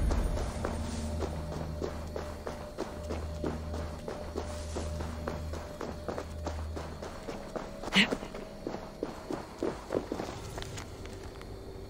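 Footsteps run quickly through grass and over soft ground.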